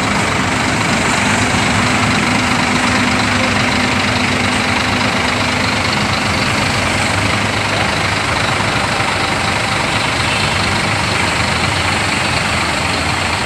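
A large bus engine rumbles loudly close by as the bus pulls slowly away.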